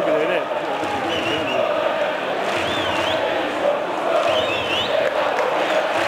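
Whistles shrill from the crowd.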